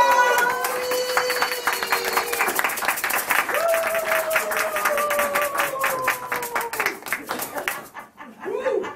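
A crowd claps along in rhythm.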